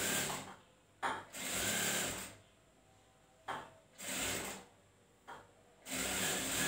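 A sewing machine runs in short whirring bursts.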